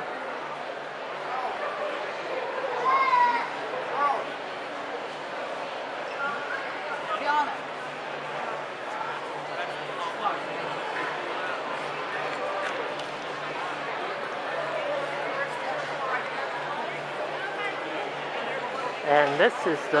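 A crowd of many people chatters in a large echoing hall.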